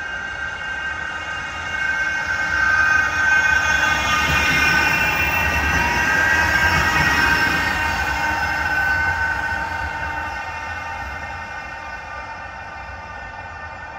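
Tram wheels whine on the rails as a tram passes.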